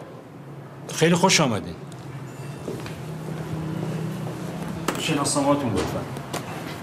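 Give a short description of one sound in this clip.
A middle-aged man speaks loudly and tensely nearby.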